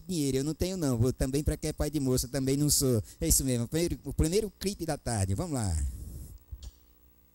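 A man speaks loudly and with animation into a microphone, drawing out his words.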